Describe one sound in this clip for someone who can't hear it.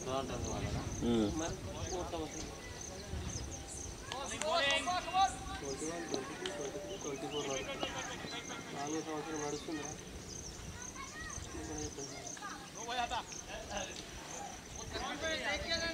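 Men call out to each other from a distance across an open field.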